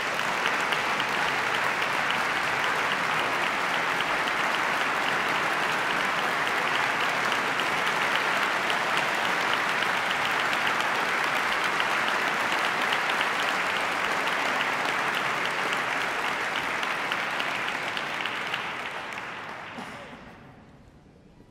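A large audience applauds loudly in a big echoing hall, then the clapping dies away.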